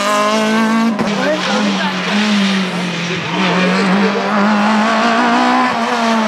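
A second rally car engine revs in the distance and grows louder as it approaches.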